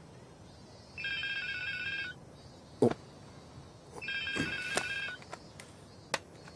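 A mobile phone rings.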